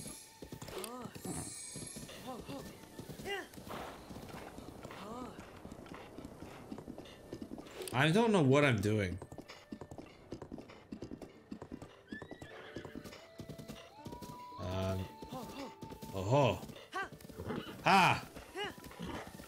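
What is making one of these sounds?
Horse hooves thud on grass at a gallop.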